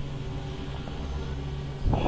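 Sparks crackle and fizz.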